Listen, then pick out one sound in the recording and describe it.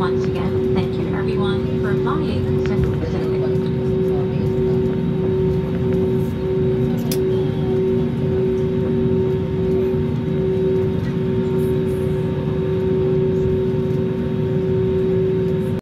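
Jet engines hum steadily from inside an airplane cabin.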